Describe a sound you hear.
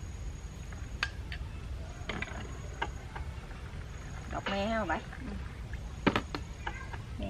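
Dishes clink.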